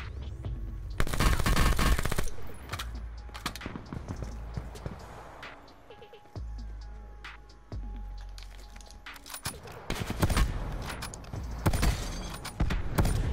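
Rapid gunfire bursts loudly, close by.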